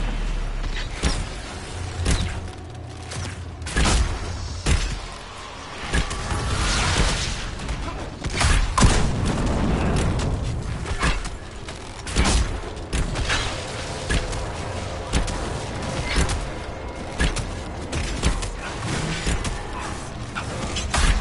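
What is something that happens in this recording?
Sharp combat hits and impacts crack repeatedly.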